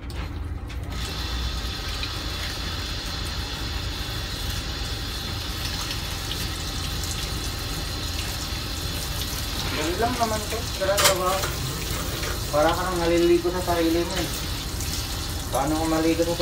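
A shower sprays water steadily, splashing onto a wet dog.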